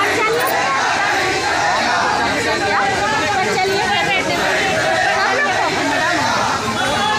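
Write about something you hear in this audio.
A large crowd of women and men chatters loudly and excitedly close by, outdoors.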